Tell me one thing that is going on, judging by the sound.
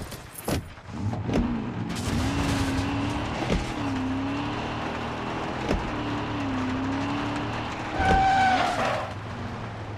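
A car engine hums steadily, rising and falling as it drives.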